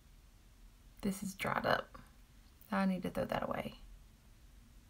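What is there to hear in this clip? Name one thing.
A woman speaks calmly and close to the microphone.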